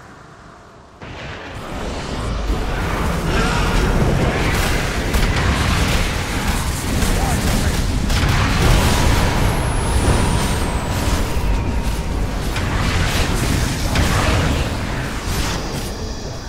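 Game spell effects crackle and explode in a busy battle.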